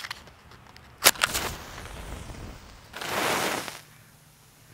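A match strikes and flares with a hiss.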